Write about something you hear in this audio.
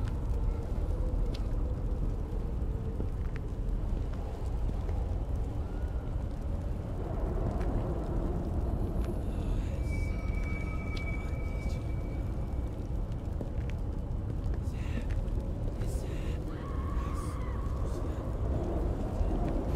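Footsteps tread slowly on wet stone.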